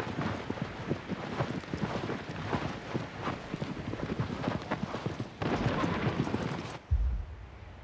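Horse hooves gallop over hard ground.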